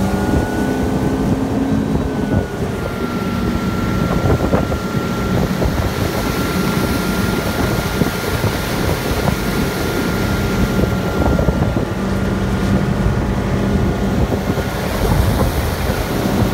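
A motorboat engine drones steadily close by.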